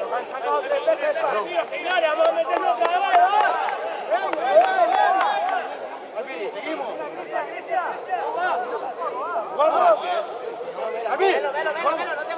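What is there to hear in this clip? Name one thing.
Young players shout and call to each other from across an open field.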